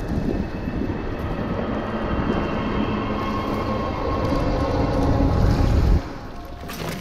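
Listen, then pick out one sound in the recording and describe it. A large creature growls with a deep rumble.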